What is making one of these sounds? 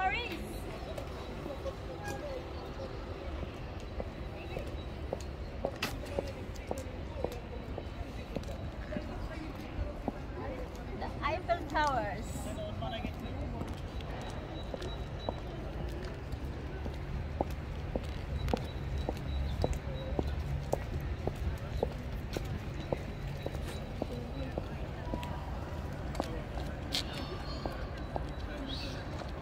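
Heels click steadily on pavement.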